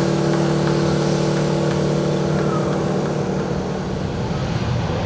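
A jet engine hums steadily up close.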